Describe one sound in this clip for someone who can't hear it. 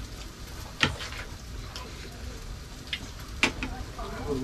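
Forks clink against plates.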